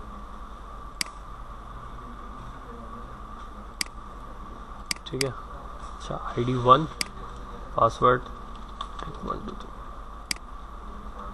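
A computer mouse clicks a few times.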